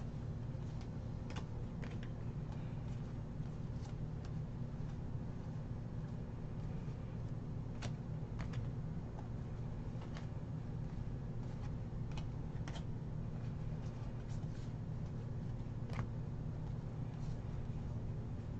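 Trading cards shuffle and flick against each other in hands.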